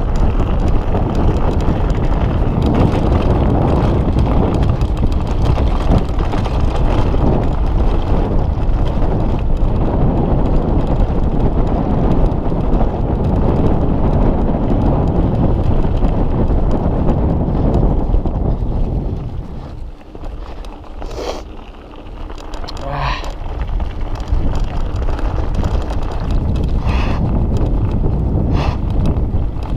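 Wind rushes loudly past a microphone.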